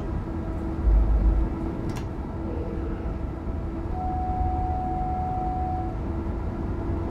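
A train hums and rumbles steadily along the tracks.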